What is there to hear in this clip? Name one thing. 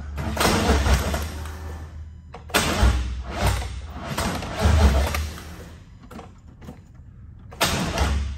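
A car engine revs in short bursts close by.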